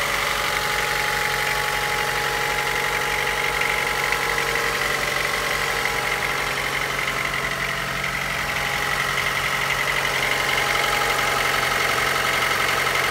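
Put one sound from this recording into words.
A car engine idles close by with a steady hum and whine.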